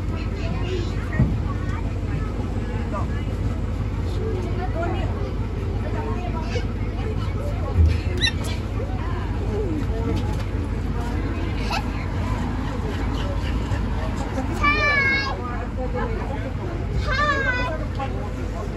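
A small open-sided park train rumbles as it rolls along.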